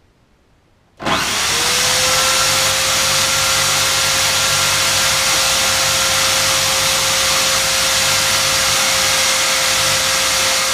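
A bench grinder starts up and whines loudly and steadily.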